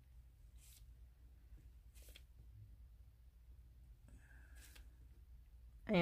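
A gloved fingertip rubs softly against a silicone mould.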